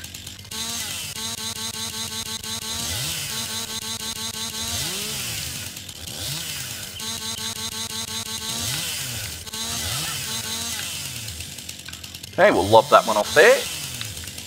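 A chainsaw engine buzzes steadily as it cuts through wood.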